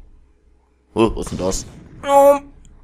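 A grenade explodes with a loud blast.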